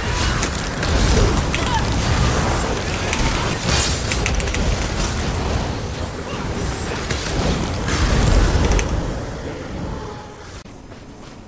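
Spells crackle and blast in a fierce fight.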